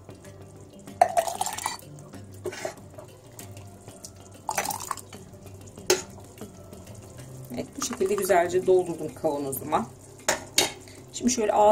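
A metal ladle clinks against a glass jar.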